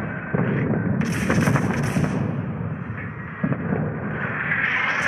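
Heavy guns boom and shells explode with deep rumbling blasts.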